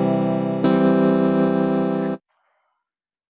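A synthesized guitar strums two chords.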